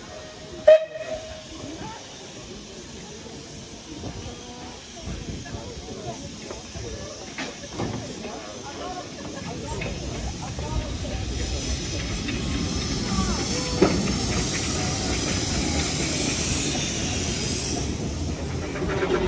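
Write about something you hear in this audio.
A small steam locomotive chuffs as it slowly approaches.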